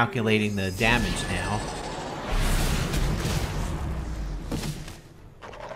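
A magic spell swirls and whooshes loudly.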